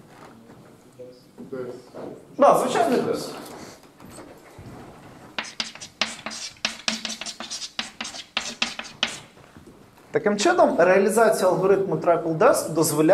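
A man lectures aloud in a room with some echo.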